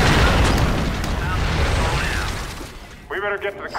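An explosion booms and rumbles loudly.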